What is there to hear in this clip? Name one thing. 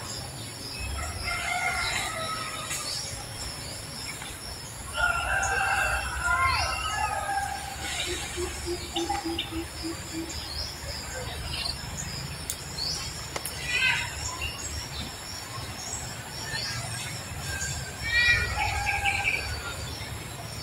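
A baby monkey squeaks and whimpers in short, high cries.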